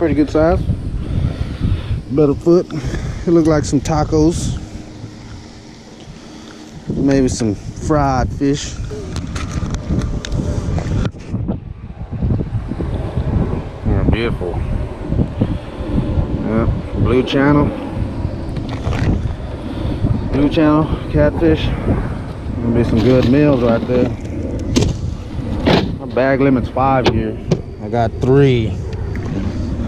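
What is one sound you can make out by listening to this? A man talks calmly close to the microphone.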